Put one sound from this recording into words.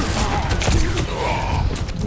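A revolver fires in a video game.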